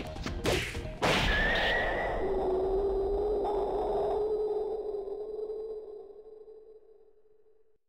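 A loud explosion booms and rings out, then slowly fades.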